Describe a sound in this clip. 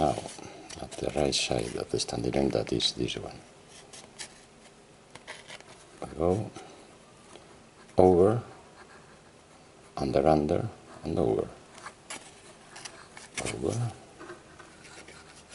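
A thin cord rustles and slides softly as it is wound and tied.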